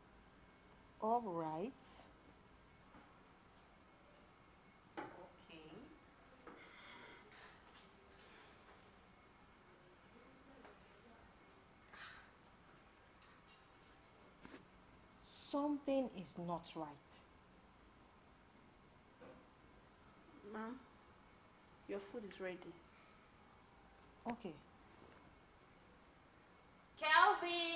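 A woman speaks with agitation, close by.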